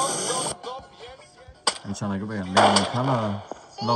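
An explosion booms from a tablet speaker.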